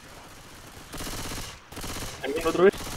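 A submachine gun fires a rapid burst.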